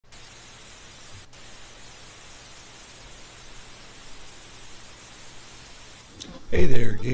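Static hisses steadily.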